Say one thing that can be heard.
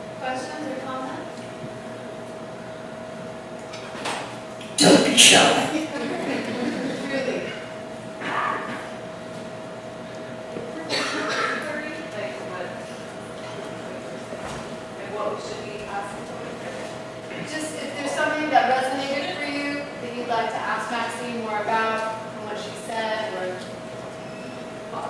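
A woman speaks through a microphone and loudspeaker in an echoing hall.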